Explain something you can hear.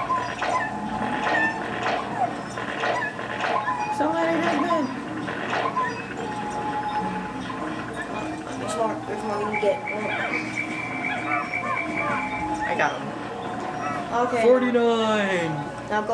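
Cheerful music plays steadily.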